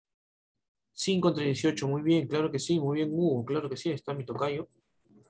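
A young man speaks calmly through an online call microphone.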